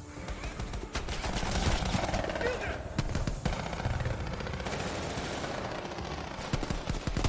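Gunshots ring out in a loud burst.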